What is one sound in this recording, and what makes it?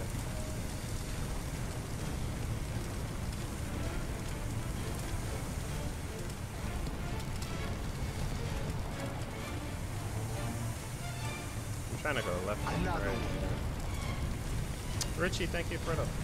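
Water sprays hard from a fire hose.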